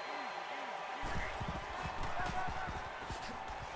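Football players crash into each other with heavy thuds.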